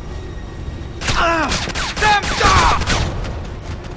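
Muffled gunshots fire in quick bursts.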